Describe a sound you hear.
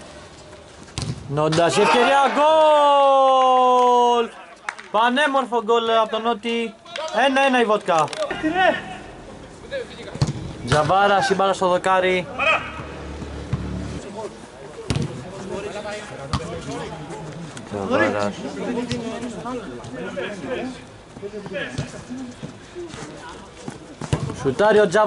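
Men shout loudly to each other during a game.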